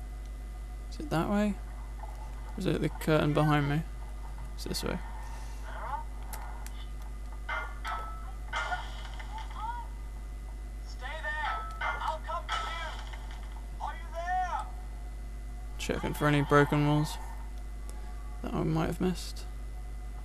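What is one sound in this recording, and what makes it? Blades swing and clash in a fight, with short sharp whooshes and rings.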